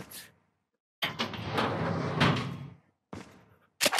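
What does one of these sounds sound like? A metal filing cabinet drawer scrapes open.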